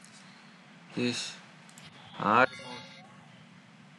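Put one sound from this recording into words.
A young man speaks briefly and casually into a nearby microphone.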